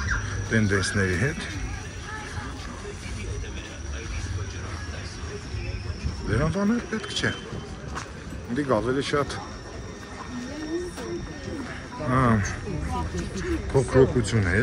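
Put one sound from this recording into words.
Men and women talk nearby outdoors.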